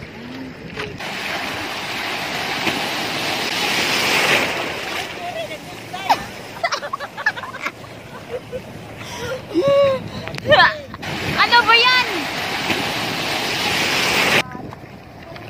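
Waves break and rush onto the shore outdoors.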